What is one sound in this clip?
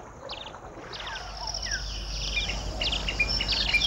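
Small birds chirp and twitter.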